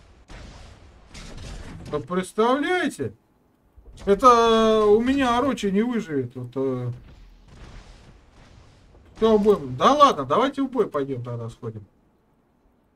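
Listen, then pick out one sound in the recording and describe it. A man talks animatedly and close into a microphone.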